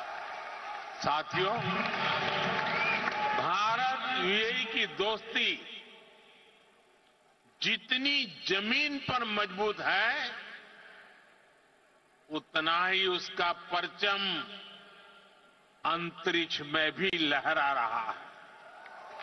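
An elderly man speaks forcefully through a microphone, echoing in a large hall.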